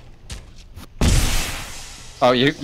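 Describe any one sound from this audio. A blast booms loudly nearby.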